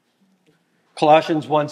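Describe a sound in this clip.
A middle-aged man speaks clearly into a microphone.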